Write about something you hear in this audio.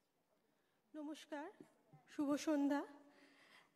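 A woman speaks clearly into a microphone, heard through loudspeakers.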